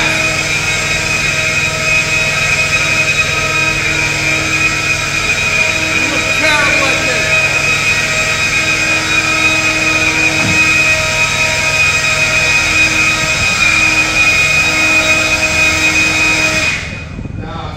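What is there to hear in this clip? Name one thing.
A leaf blower whines steadily, echoing inside a hollow metal space, then cuts off.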